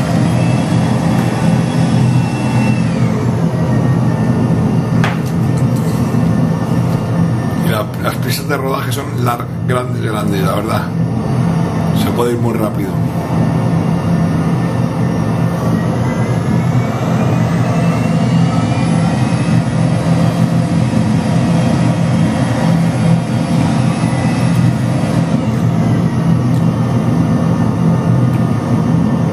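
A jet airliner's engines roar steadily.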